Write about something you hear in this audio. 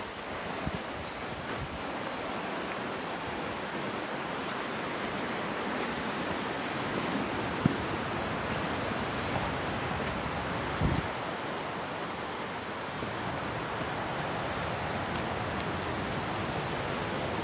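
Footsteps crunch and scuff on a stony path.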